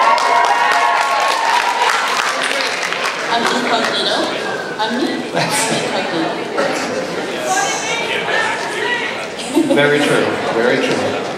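A man speaks into a microphone over loudspeakers in a large hall.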